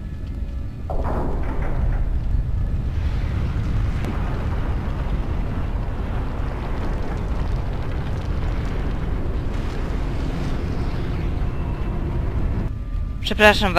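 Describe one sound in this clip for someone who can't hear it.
Heavy stone grinds and rumbles deeply as a great tower turns.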